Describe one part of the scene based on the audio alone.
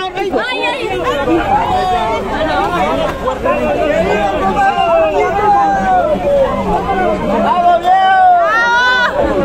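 A crowd of men and women shout over one another nearby.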